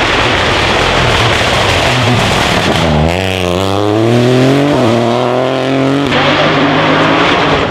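A rally car engine roars loudly, revving up through the gears as the car speeds past close by.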